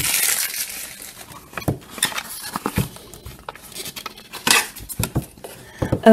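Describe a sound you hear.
Cardboard scrapes as a small box is opened.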